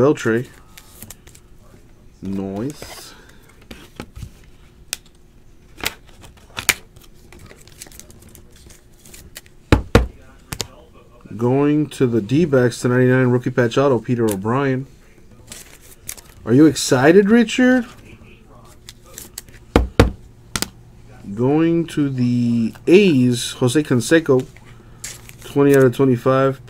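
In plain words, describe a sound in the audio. Cards slide and click into stiff plastic holders close by.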